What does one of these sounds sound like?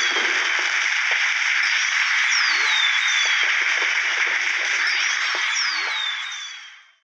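A crowd roars and cheers steadily in a large arena.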